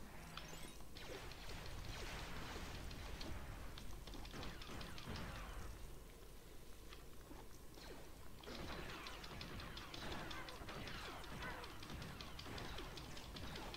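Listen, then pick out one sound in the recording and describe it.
Blaster shots and small explosions crackle in rapid bursts.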